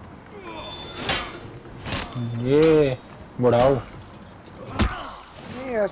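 Steel blades clash and clang in a fight.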